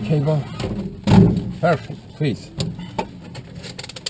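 A cockpit canopy latch clicks.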